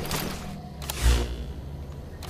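A body drops to the ground with a thud.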